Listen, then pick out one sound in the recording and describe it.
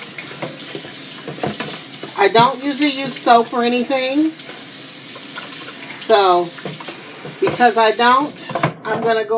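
Tap water runs and splashes steadily.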